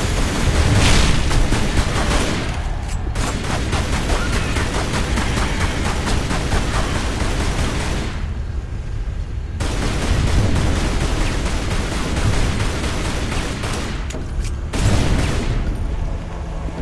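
Pistols fire in rapid bursts of sharp shots.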